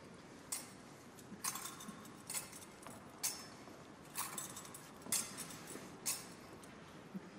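A metal censer's chains clink and jingle in steady swings, echoing in a large hall.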